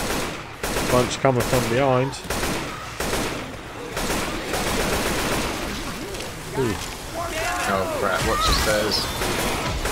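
Zombies growl and shriek.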